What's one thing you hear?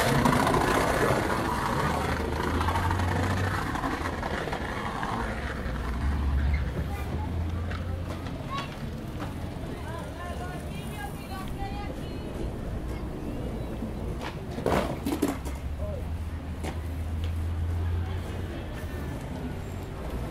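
A crowd of people chatters at a distance in an open outdoor space.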